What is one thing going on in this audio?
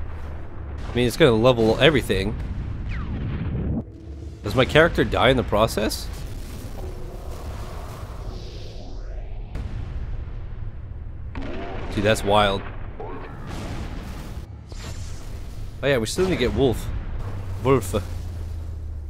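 A man speaks close into a microphone with animation.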